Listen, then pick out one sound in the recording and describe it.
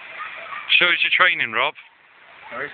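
A young man speaks loudly nearby, outdoors.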